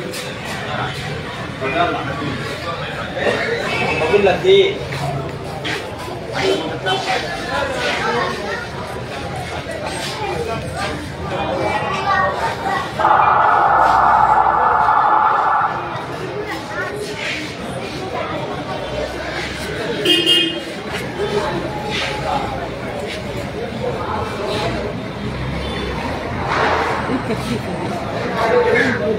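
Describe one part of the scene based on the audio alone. A crowd of men talk and shout nearby, outdoors.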